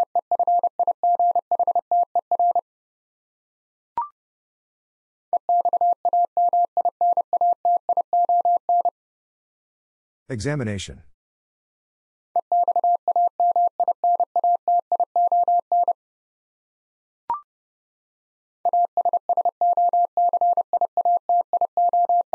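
A Morse code key beeps out quick bursts of steady high tones.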